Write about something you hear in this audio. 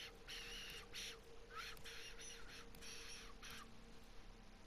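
Soft electronic chimes ring as menus open and close.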